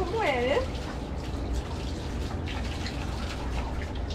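Water splashes from a tap onto a rubber mat.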